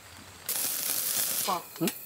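Flames roar and crackle under a grill.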